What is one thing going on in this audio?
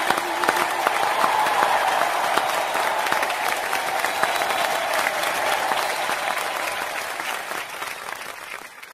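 A crowd claps along in rhythm.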